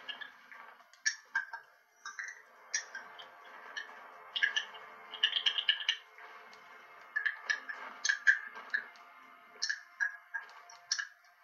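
Game menu sounds click and tick as selections move.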